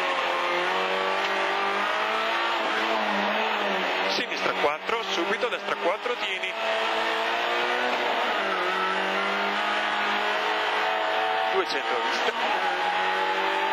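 A rally car engine revs hard, heard from inside the car.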